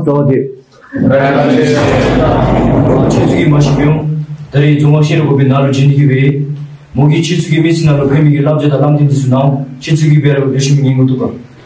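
A young man speaks clearly to a room.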